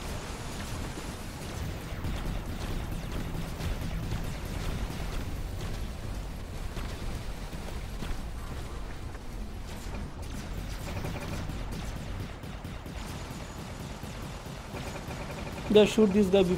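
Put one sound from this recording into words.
Giant robots stomp heavily with deep, rumbling footsteps.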